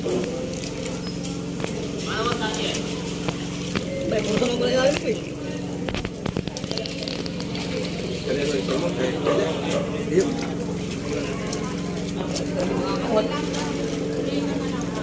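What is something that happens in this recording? Several men and women chatter nearby.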